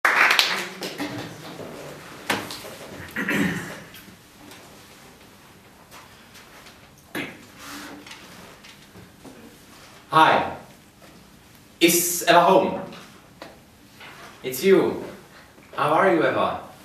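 A young man speaks with animation in a room with a slight echo, pausing between phrases.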